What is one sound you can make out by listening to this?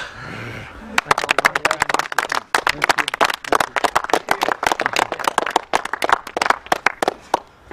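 A group of people claps hands quickly and steadily.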